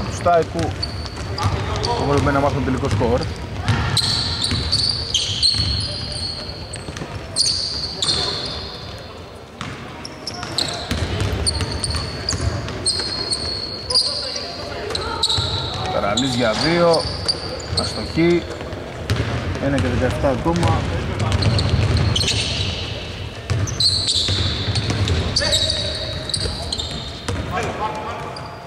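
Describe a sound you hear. A basketball bounces with dull thuds on the court.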